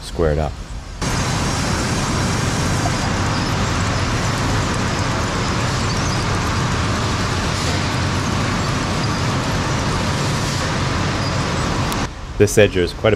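Machinery roars steadily.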